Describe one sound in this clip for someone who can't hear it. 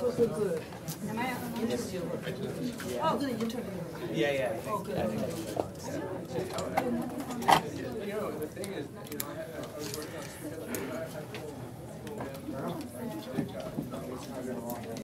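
Several men and women chat at once in a room.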